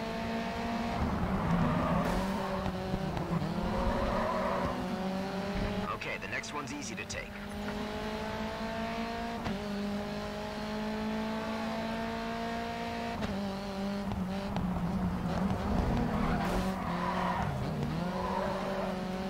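Tyres screech as a car slides through a corner.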